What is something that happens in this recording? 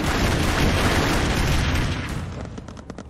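Gunshots rattle in rapid bursts.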